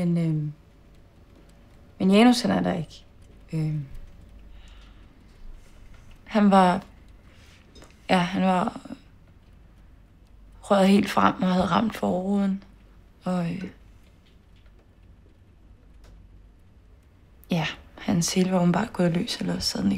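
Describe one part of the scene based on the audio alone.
A young woman speaks quietly and haltingly nearby.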